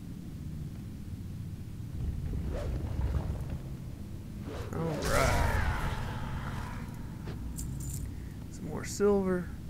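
A large creature stomps and bashes during a fight.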